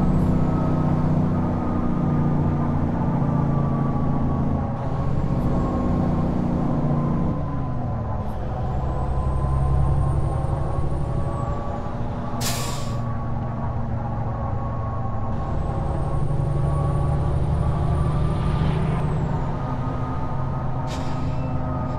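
A truck's diesel engine rumbles steadily, its pitch shifting as it changes gear.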